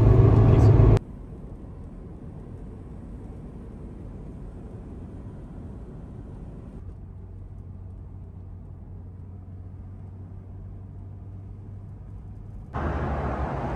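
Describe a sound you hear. Tyres hum faintly on the road as a car drives.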